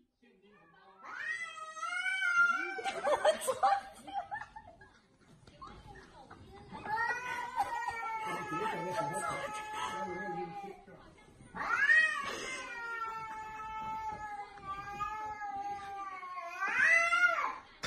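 A cat yowls in long, drawn-out, wavering cries.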